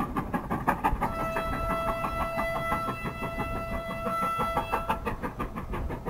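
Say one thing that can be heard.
A steam locomotive's whistle sounds a long, steady blast.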